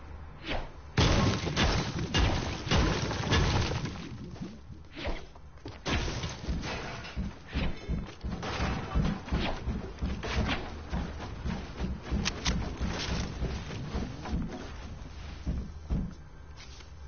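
A pickaxe strikes wood with quick, sharp knocks.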